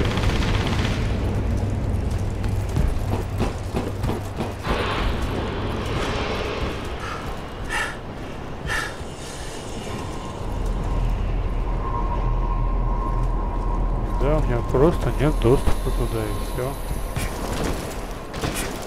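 Footsteps clang on metal stairs and walkways.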